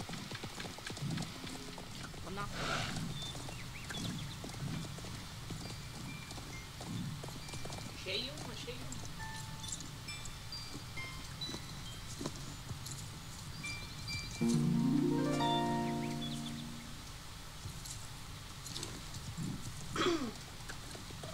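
A horse's hooves thud steadily on dirt as the horse gallops.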